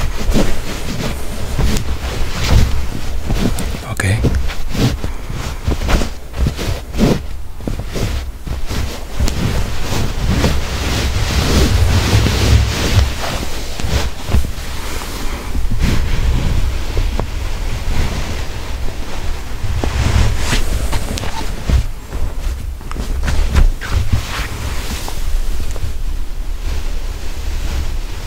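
Hands knock and rub against a phone up close.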